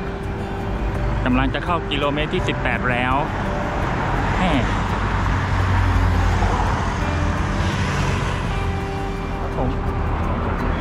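Traffic hums by on a nearby road.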